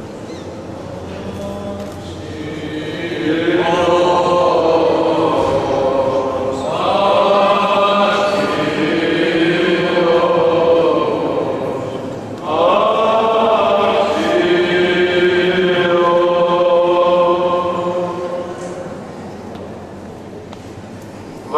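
A group of men chant slowly in unison in a large echoing hall.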